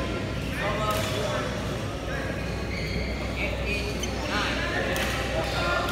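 A shuttlecock is struck sharply with a racket.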